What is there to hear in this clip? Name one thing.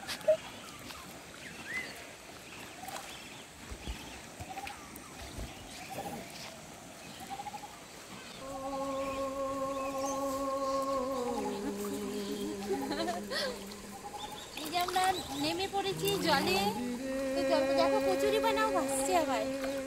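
Water splashes as a girl wades through a shallow stream.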